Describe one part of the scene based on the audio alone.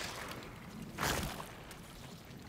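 A boot heel stomps down onto a wet, fleshy creature.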